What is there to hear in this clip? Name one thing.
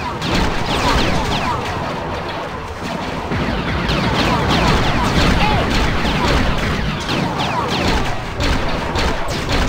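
Blasters fire in rapid bursts of laser shots.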